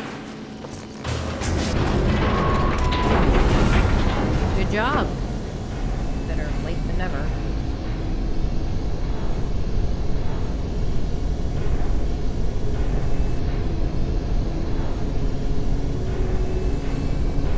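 A tram car rumbles steadily as it rolls along.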